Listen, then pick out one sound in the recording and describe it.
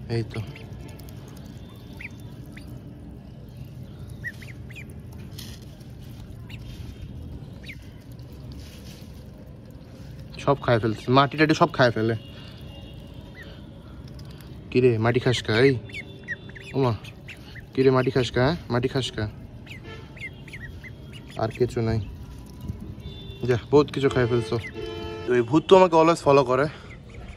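Ducklings peep softly close by.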